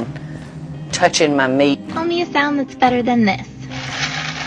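An elderly woman speaks with animation.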